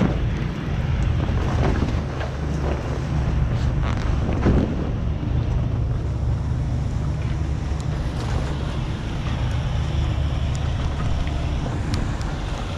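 A truck engine idles nearby with a low steady rumble.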